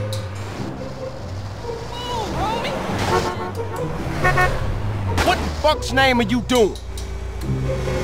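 A heavy bus crashes down onto a road with loud metal bangs and scraping.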